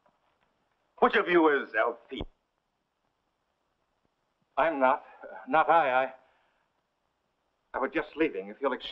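Men speak in turn, calmly and up close.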